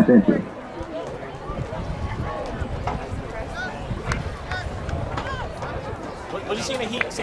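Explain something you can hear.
A crowd of spectators chatters in the distance outdoors.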